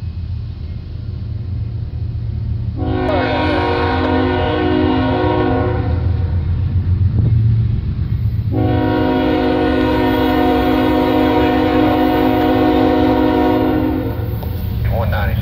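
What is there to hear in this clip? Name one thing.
A diesel locomotive rumbles low as it approaches.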